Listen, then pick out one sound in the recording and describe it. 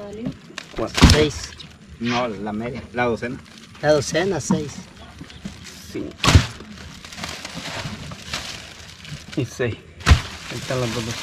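Fish thump against a boat's hull.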